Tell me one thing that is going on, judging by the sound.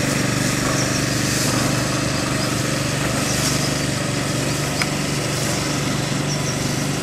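A small truck's engine runs.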